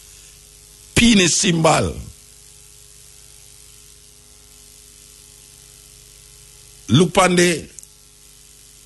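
A man speaks in short, lively bursts close to a microphone.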